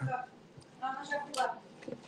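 A man crunches a tortilla chip.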